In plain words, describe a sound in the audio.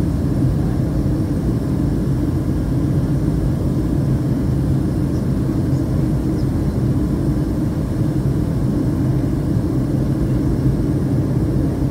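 Jet engines roar with a steady, deep drone inside an airliner cabin.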